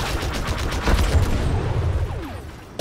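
A large explosion booms.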